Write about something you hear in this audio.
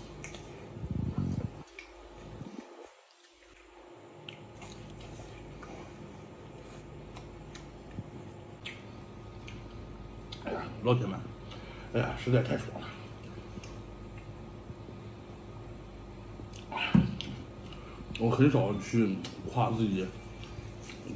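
A man crunches loudly on crispy fried food close up.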